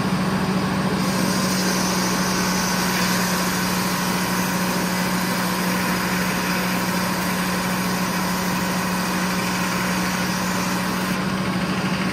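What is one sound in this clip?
A large circular saw blade whines as it cuts through a log.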